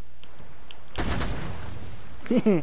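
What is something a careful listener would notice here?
A heavy object splashes into water.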